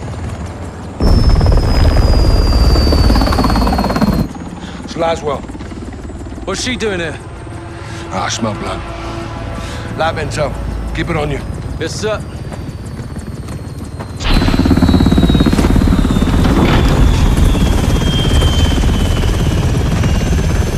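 A helicopter's rotor roars loudly.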